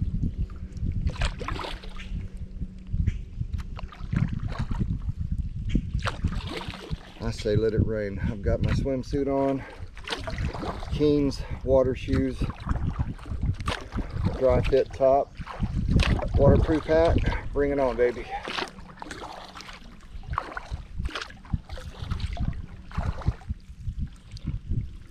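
Water laps and splashes gently against a kayak's hull.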